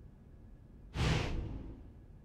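A soft whoosh sweeps past.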